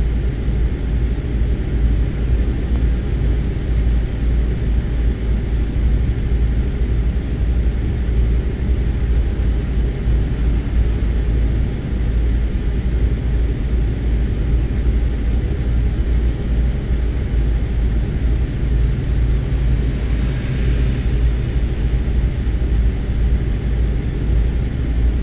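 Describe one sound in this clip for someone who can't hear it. Tyres roll on the road with a steady rumble.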